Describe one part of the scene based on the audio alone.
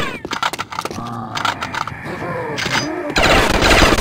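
A zombie growls and groans nearby.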